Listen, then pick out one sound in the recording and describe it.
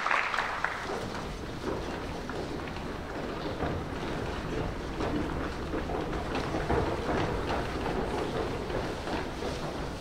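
Footsteps shuffle across a stage.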